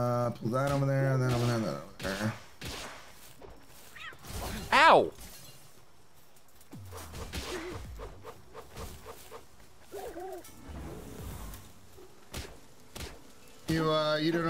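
Blows land with sharp thuds in a game fight.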